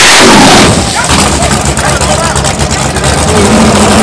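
A race car engine roars loudly as the car launches down the track.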